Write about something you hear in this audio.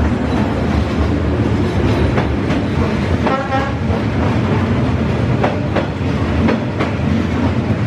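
A train rushes past close by with a loud, steady rumble.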